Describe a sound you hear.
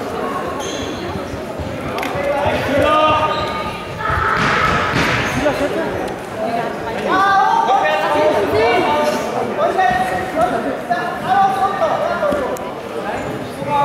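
Spectators shout and cheer in a large echoing hall.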